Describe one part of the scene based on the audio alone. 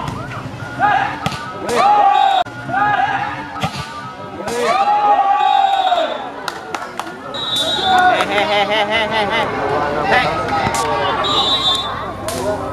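Young men shout loudly outdoors during a ball game.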